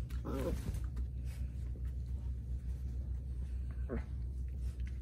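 A small dog whines in short high yelps.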